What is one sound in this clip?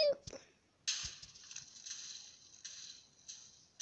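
Blocks break apart in a game with crumbling bursts.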